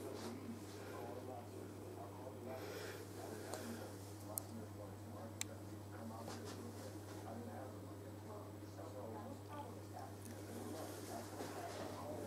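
A woman speaks calmly close to the microphone.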